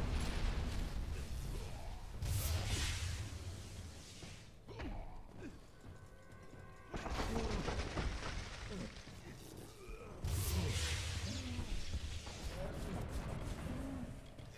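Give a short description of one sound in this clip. Magic blasts roar and crackle in bursts.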